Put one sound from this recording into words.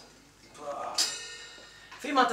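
A cymbal crashes and rings.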